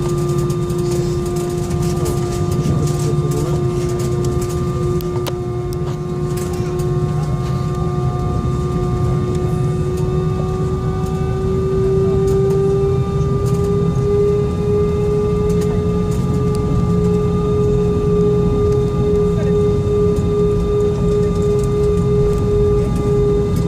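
Wheels rumble over a runway.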